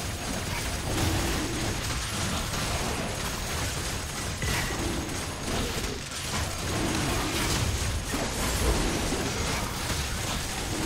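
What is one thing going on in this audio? Fantasy spell effects crackle and burst in rapid succession.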